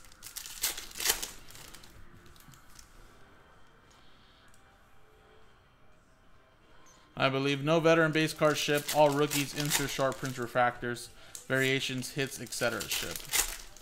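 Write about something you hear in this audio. A foil wrapper crinkles and tears as hands open it.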